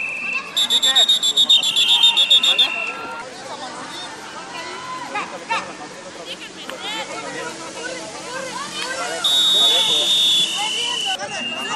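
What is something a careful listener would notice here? Young women shout and call out to each other outdoors at a distance.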